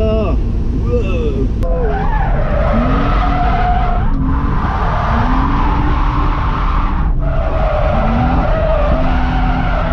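A car engine roars close by, revving up and dropping with each gear change.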